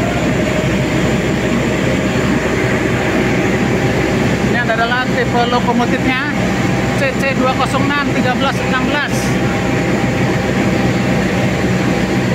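A diesel locomotive engine hums loudly.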